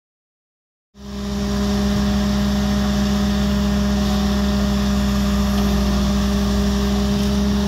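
A skid steer loader's diesel engine rumbles steadily close by.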